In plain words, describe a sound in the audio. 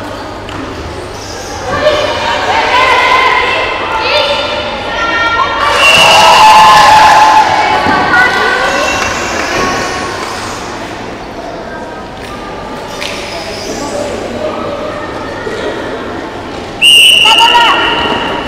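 A crowd of young spectators cheers and shouts in a large echoing hall.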